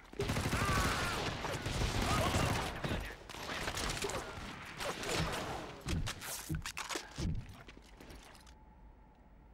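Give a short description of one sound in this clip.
A man talks with animation, close to a microphone.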